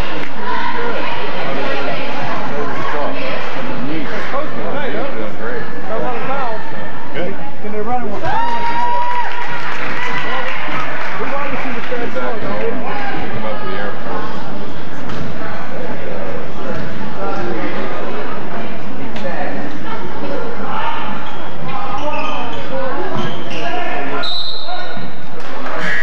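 A crowd of spectators chatters and calls out, echoing in a large hall.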